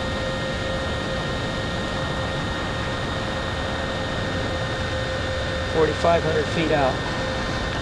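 A drone's motors whine steadily.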